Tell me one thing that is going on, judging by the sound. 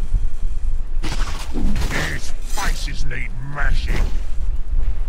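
Magic spells whoosh and crackle in a fight between game characters.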